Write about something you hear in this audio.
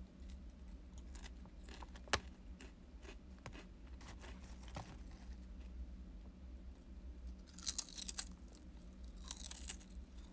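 A young woman chews and slurps food close by.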